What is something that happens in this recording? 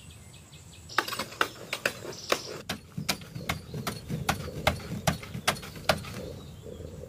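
A man strikes a wall with heavy blows.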